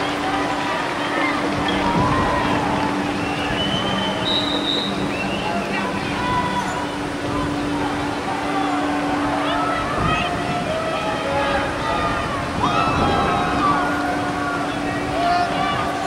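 Young men shout to each other far off across an open field outdoors.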